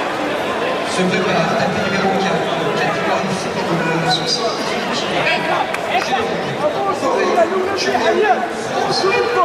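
Spectators shout with excitement.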